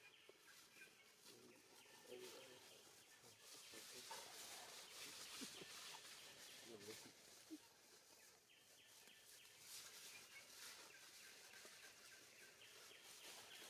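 Dry leaves rustle as a baby monkey crawls over them.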